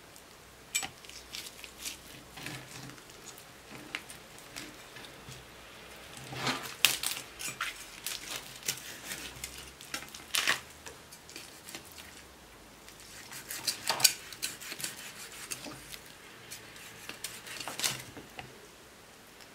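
A knife cuts and scrapes through crisp roasted skin and meat.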